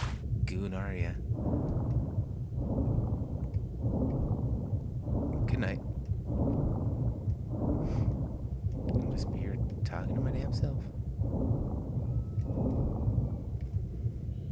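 Water swishes with slow, even swimming strokes.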